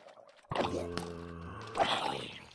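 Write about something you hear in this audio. A zombie groans low.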